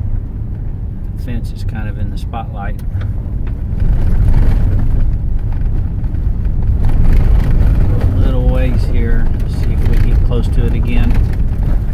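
Wind buffets against an open car window.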